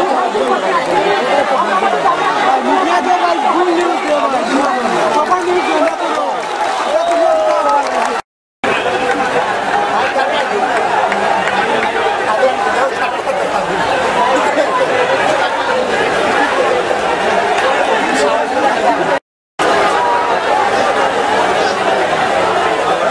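A large crowd of young men shouts and chatters loudly outdoors.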